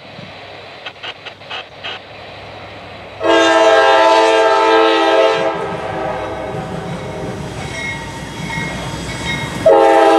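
A diesel locomotive engine rumbles as a train approaches.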